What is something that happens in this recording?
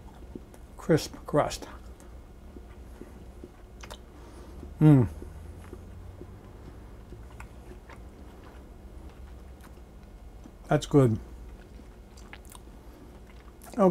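A man chews food close to a microphone.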